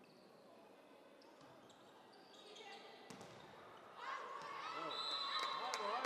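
A volleyball is struck with hard slaps in a large echoing hall.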